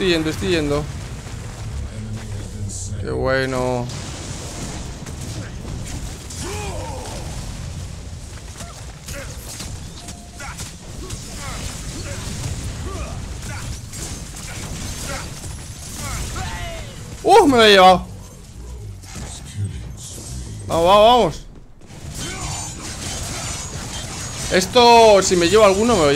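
Game battle sounds of blasts and spells crackle throughout.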